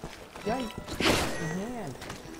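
A gunshot bangs once.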